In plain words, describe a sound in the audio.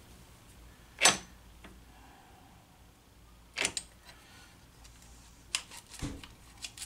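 Metal tools click and clink against gears.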